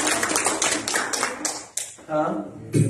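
An acoustic guitar strums quickly and loudly.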